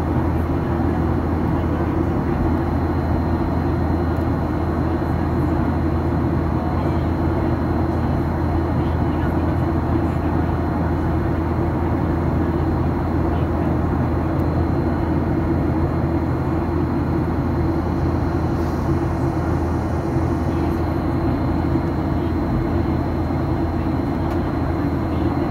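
An airliner's engines roar in a steady, deep drone inside the cabin.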